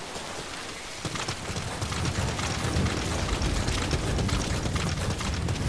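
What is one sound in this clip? Footsteps run quickly over rough, stony ground.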